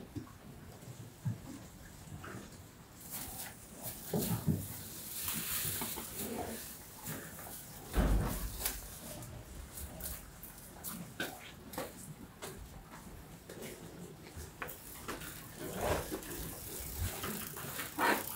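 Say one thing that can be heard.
Cattle shuffle and stamp on straw bedding.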